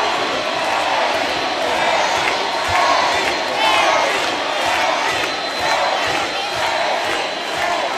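Music plays loudly through a concert sound system.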